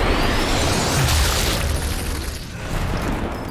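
A bullet strikes a body with a heavy thud in slow motion.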